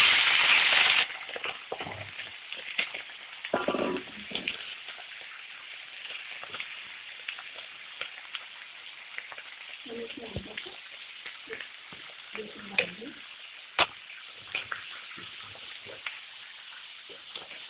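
Vegetables sizzle and spatter as they fry.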